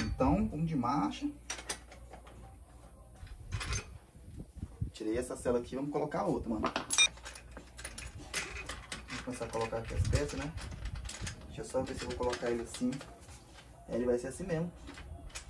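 Metal parts of a bicycle click and clank as a saddle is handled.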